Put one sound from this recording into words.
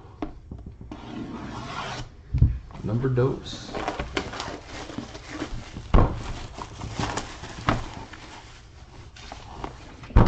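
Plastic wrap crinkles as it is peeled off a box.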